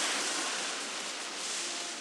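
Fire bursts with a roaring whoosh.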